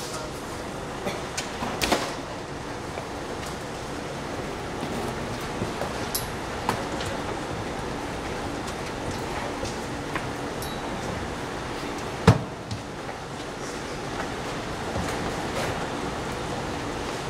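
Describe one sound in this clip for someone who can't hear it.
Footsteps thud down the steps of a bus.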